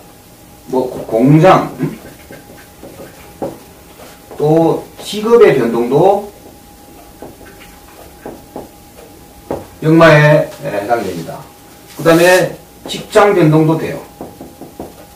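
A middle-aged man speaks calmly in bursts, close by.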